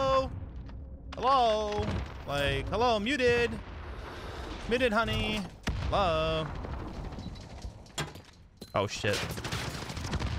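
A young man talks with animation through a headset microphone.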